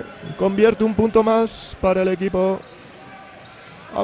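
Sneakers squeak on a wooden court as players run.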